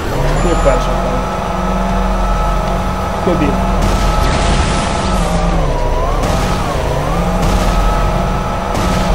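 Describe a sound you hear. A vehicle's engine hums steadily, its pitch dipping now and then.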